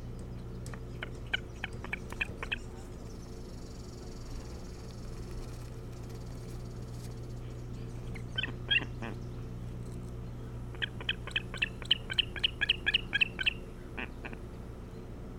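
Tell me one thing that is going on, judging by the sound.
A large bird calls from close by in sharp, rapid, repeated chirps.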